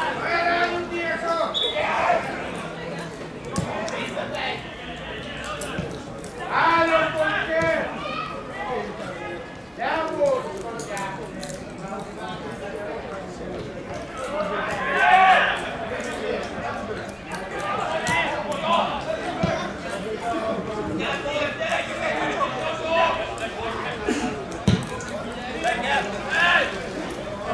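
Men shout to each other across an open field outdoors.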